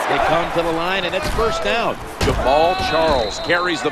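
Football players collide in a tackle with heavy thuds.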